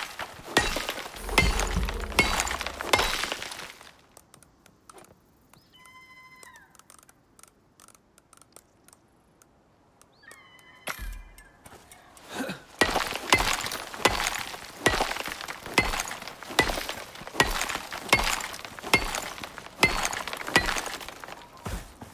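A pickaxe strikes rock with sharp, repeated knocks.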